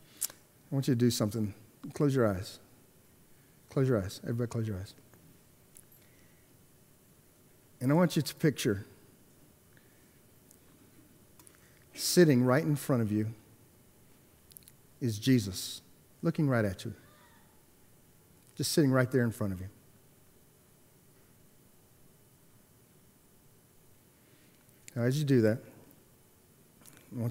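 A middle-aged man speaks with animation into a microphone, with long pauses.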